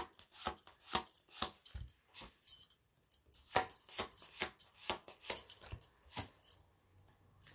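Playing cards tap and slide onto a table.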